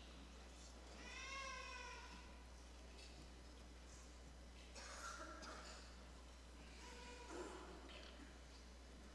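A man speaks up close, with pauses.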